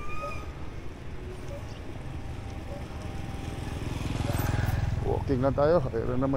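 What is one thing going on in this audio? A motorbike approaches and passes close by.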